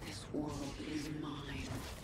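An electric energy blast crackles and zaps.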